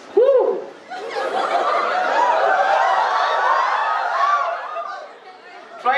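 A crowd of young people chants together loudly.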